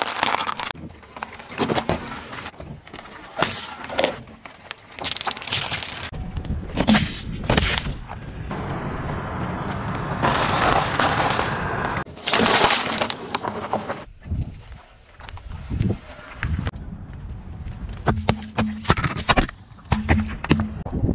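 A car tyre rolls over objects and crushes them with cracks and crunches.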